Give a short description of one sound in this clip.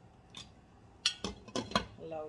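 A metal lid clatters onto a pot.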